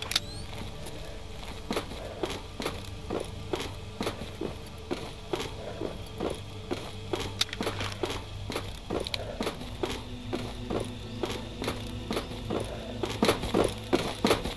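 Footsteps thud steadily on a hard floor in an echoing tunnel.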